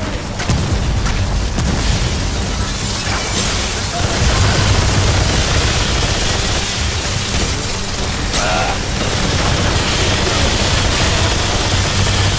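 A laser beam hums and crackles.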